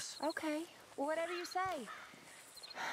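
A young woman answers calmly nearby.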